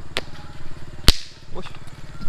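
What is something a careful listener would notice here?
A firecracker bursts with a sharp bang.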